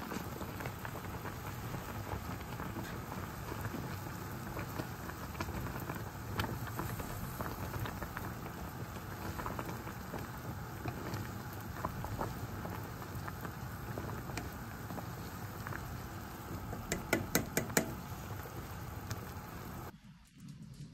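Water boils and bubbles hard in a pot.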